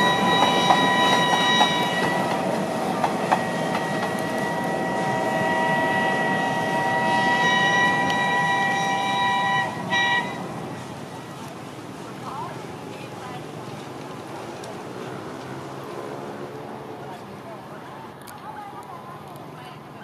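A steam locomotive chuffs as it pulls a train away.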